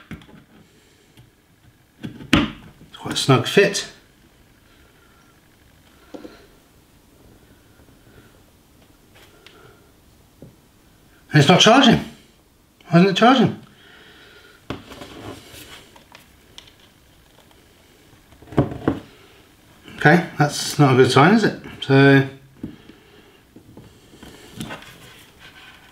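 Small plastic parts click and rattle in a man's hands.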